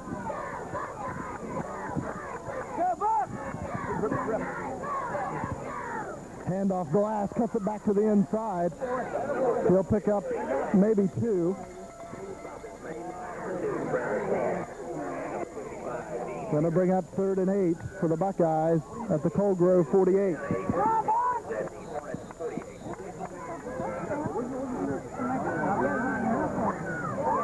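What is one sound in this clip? A crowd cheers and shouts from the stands.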